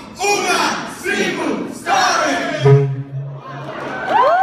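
A man speaks loudly over a loudspeaker in a large echoing hall.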